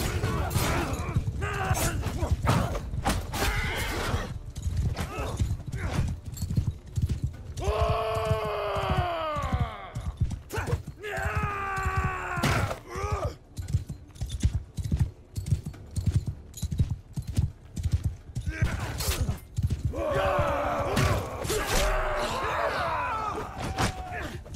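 Horses gallop with heavy, rapid hoofbeats.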